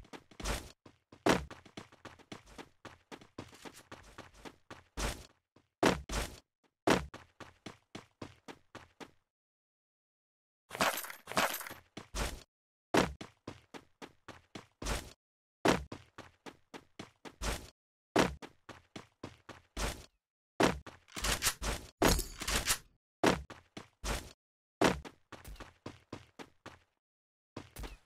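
Footsteps thud quickly and evenly.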